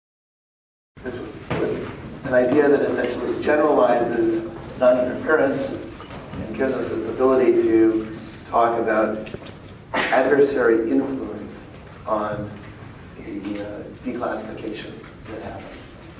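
A man lectures calmly in a room that echoes a little.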